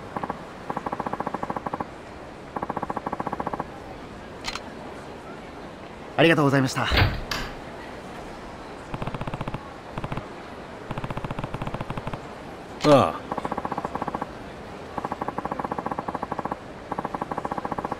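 Rapid electronic blips tick in short bursts.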